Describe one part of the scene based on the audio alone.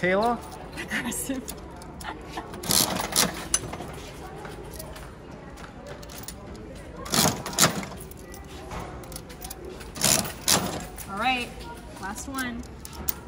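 Coins clink into a gumball machine's slot.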